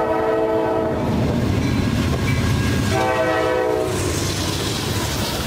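Diesel locomotives rumble and roar past close by.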